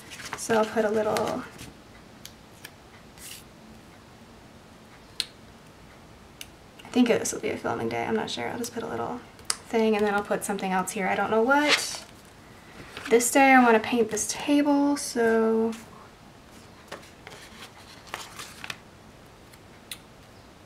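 Paper rustles softly as sticker sheets are handled.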